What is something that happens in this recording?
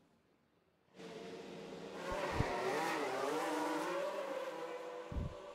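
A racing car engine roars.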